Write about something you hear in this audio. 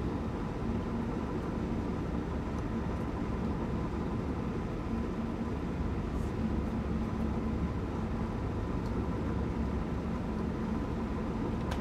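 An electric motor hums with a steady whine.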